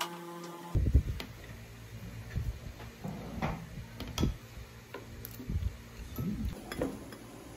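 Metal forks scrape and clink against a plate.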